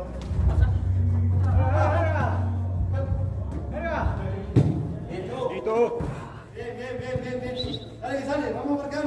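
Men shout to each other across an echoing indoor hall.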